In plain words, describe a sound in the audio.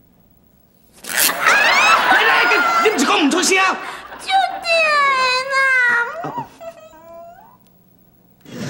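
A woman wails and cries loudly in pain.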